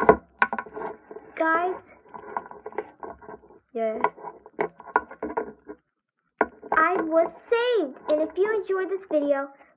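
Small plastic toys tap and knock lightly as a hand moves them.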